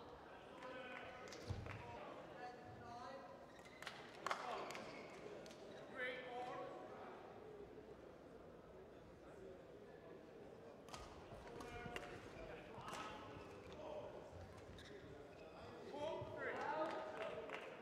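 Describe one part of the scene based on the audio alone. Players shout during play in a large echoing hall.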